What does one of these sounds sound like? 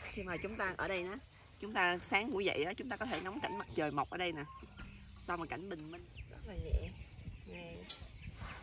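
A young woman talks brightly and close by.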